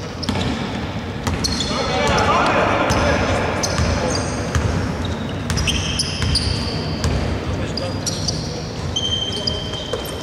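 A basketball bounces on a wooden floor.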